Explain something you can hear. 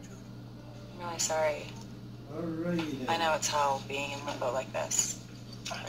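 A young woman speaks quietly and earnestly through a loudspeaker.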